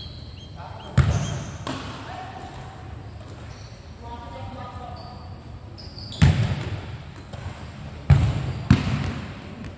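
A ball thuds loudly as it is kicked, echoing around a large hall.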